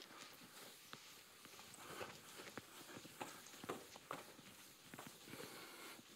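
An eraser wipes across a chalkboard.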